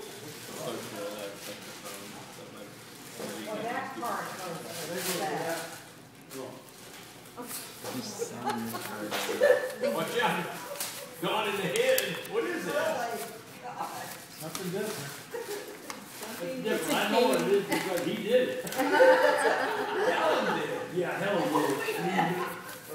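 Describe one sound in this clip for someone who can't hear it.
An elderly man talks with animation nearby.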